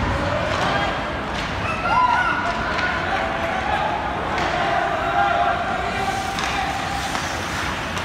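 Skates scrape across ice in a large echoing arena.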